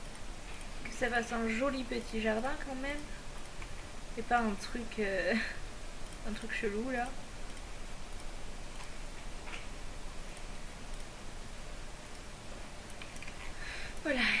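A young woman talks calmly into a headset microphone.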